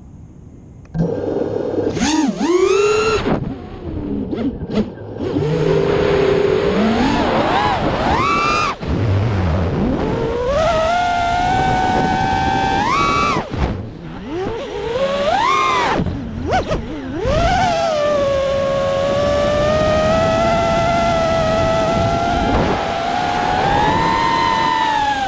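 Small drone propellers whine, rising and falling sharply in pitch as they speed up and slow down.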